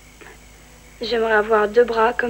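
A young boy speaks up close.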